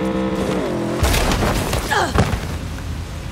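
A motorcycle crashes with a loud thud.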